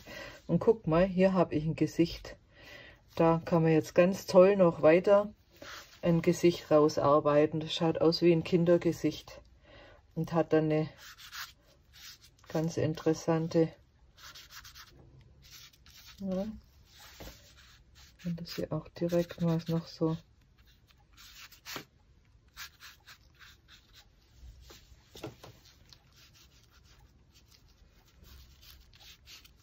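A gloved hand smears wet paint with soft squelching strokes.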